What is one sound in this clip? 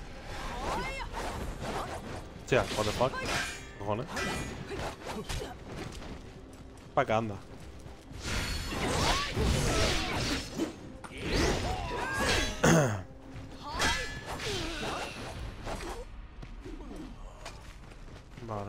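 Swords clash and slash in combat.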